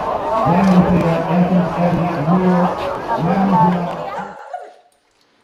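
A crowd chatters outdoors.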